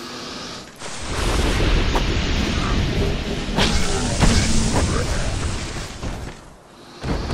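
A sword swings and strikes with a sharp whoosh.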